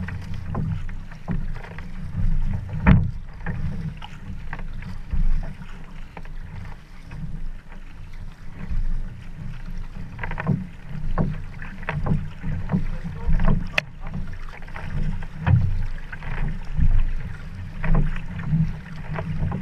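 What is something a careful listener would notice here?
Water laps and sloshes right beside the listener.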